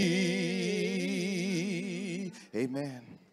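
A man sings a long held note with vibrato through a microphone.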